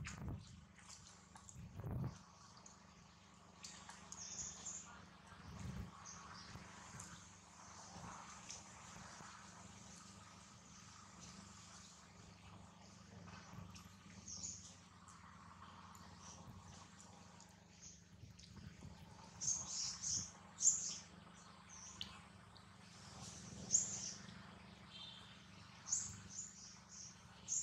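A monkey chews noisily on a banana.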